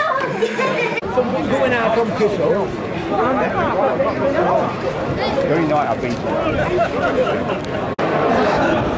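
A crowd of people chatter in a busy street outdoors.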